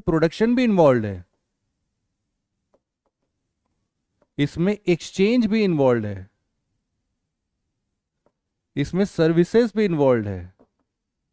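A man speaks clearly into a close microphone, in short phrases with pauses.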